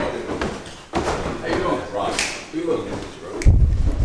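Footsteps climb stairs.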